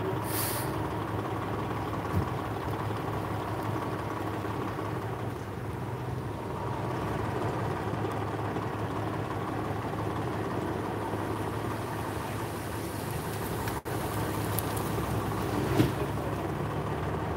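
A fire truck's engine idles with a steady low rumble nearby.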